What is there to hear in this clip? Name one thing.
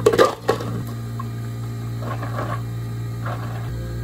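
Milk pours into a cup of ice, crackling the cubes.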